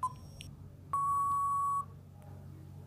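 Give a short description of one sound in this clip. A timer beeps once in a steady tone.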